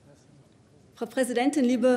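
A woman speaks clearly into a microphone in a large hall.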